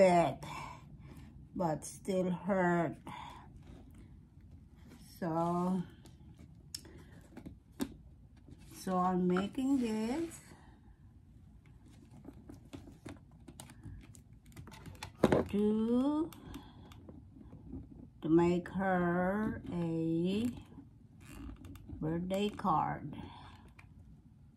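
A woman speaks calmly and close by, in short phrases with pauses.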